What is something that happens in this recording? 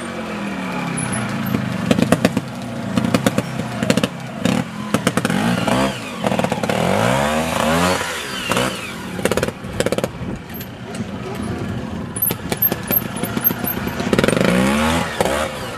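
A motorcycle engine revs up and down in short bursts close by.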